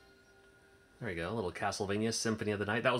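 A game console's startup chime swells and rings out.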